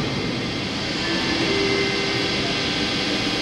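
Train brakes squeal softly as an electric train comes to a stop.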